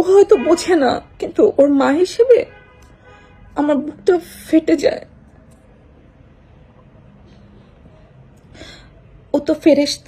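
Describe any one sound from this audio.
A young woman speaks with feeling close to a microphone, pausing between phrases.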